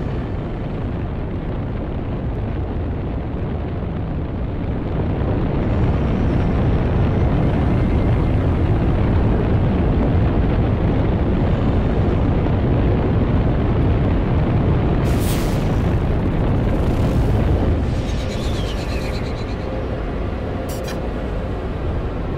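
A spaceship engine roars steadily, swelling louder for a while before settling back.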